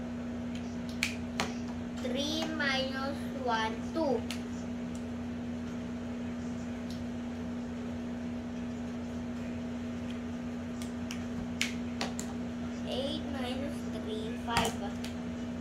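A marker cap clicks.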